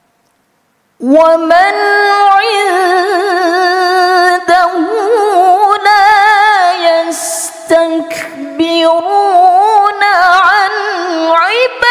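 A young woman chants a long melodic recitation loudly into a microphone, in a hall with some echo.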